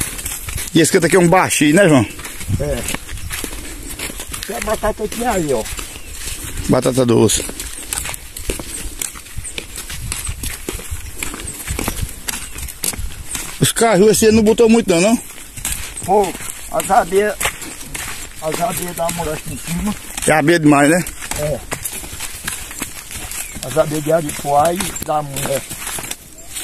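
An elderly man talks calmly nearby, outdoors.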